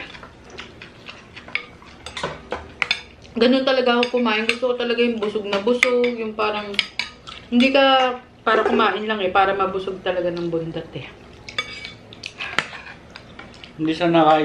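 A metal spoon clinks against a glass bowl.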